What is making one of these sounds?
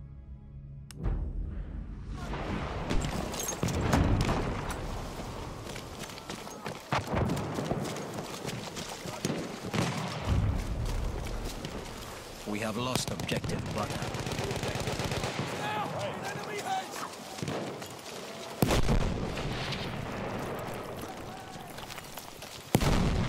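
Gunshots crack repeatedly nearby.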